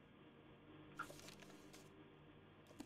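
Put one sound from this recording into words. Paper rustles as a book opens.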